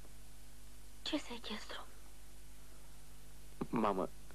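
A middle-aged woman speaks with feeling.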